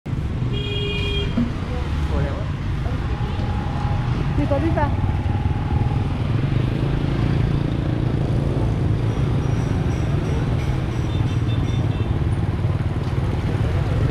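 Motorbike engines hum and putter past along a street outdoors.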